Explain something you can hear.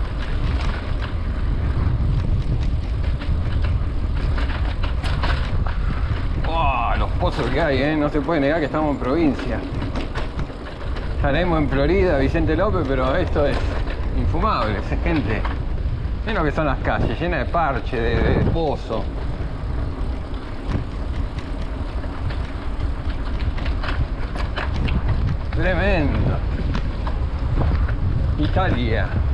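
Wind rumbles steadily against a moving bicycle.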